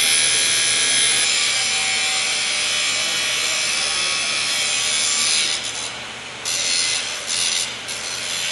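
An angle grinder shrieks as it cuts through metal wire, with brief dips in its whine.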